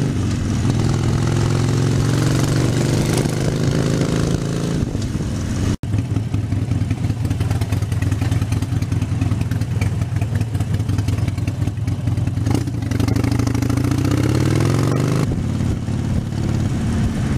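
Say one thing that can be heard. A motorcycle engine rumbles loudly up close.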